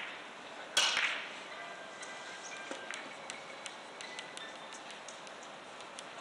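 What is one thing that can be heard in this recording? Billiard balls click against each other and thud off the cushions.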